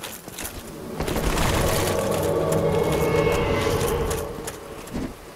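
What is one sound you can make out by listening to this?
A deep magical whoosh swells and fades.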